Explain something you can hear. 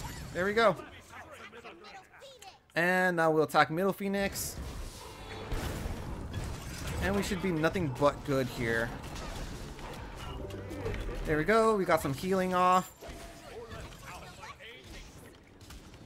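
Game spells and blows crackle and whoosh.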